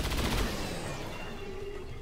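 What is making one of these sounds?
Gunfire bursts loudly.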